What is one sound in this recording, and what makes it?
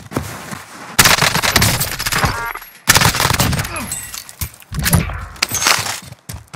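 A rifle fires loud, rapid bursts of shots.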